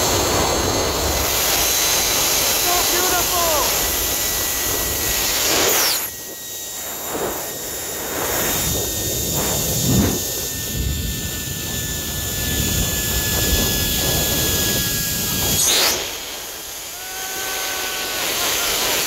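Wind rushes loudly past a microphone.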